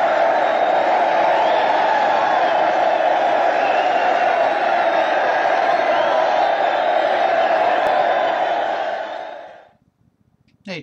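A large crowd cheers and screams loudly in a big venue, then fades out.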